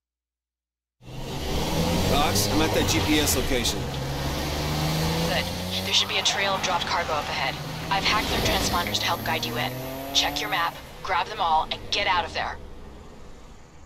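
A car engine roars and revs up through its gears.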